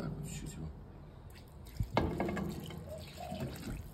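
Water pours into a pot of rice.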